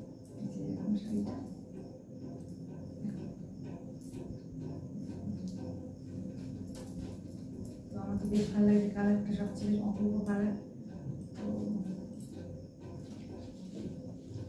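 A young woman talks calmly and warmly, close by.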